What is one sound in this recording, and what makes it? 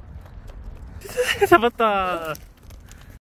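A young girl laughs loudly and close by.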